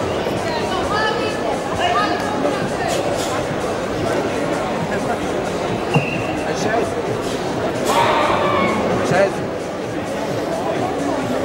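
A large crowd murmurs and chatters throughout a big echoing hall.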